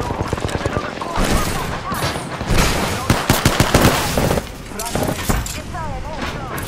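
Gunfire bursts out.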